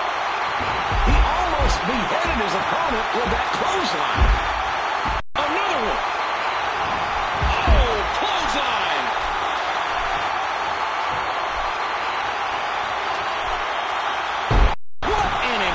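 Heavy bodies slam onto a wrestling mat with loud, dull thuds.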